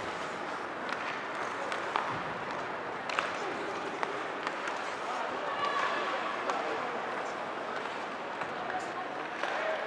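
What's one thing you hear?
Hockey sticks click sharply against a puck.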